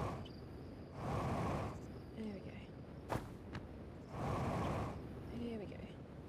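A jetpack thruster hisses in short bursts.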